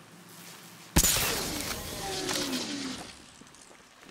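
Electrical sparks buzz and fizz, then die away.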